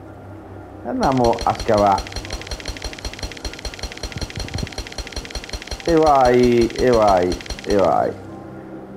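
A pickaxe strikes rock in quick, repeated blows.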